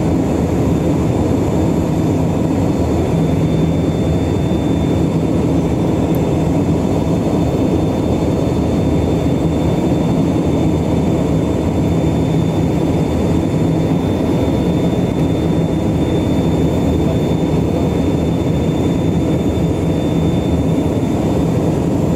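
Wind rushes past the aircraft.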